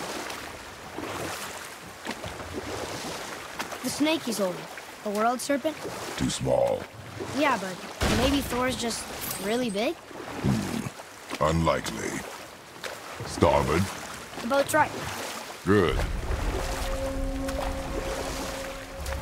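Oars splash in water as a rowing boat glides along.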